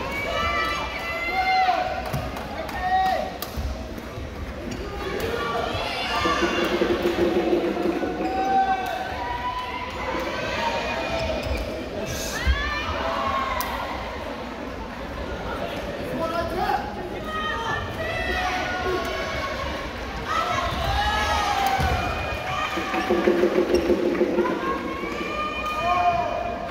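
Many people talk and call out in a large echoing hall.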